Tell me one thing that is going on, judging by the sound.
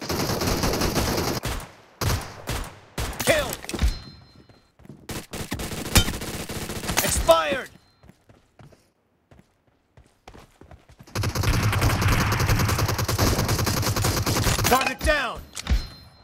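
A gun fires in rapid bursts of shots.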